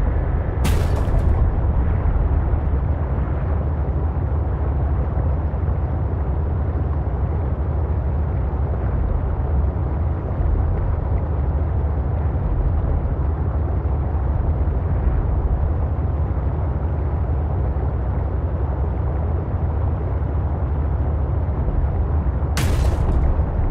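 A submarine engine hums steadily as it glides underwater.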